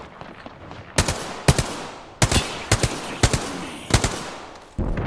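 A rifle fires loud, sharp shots in quick bursts.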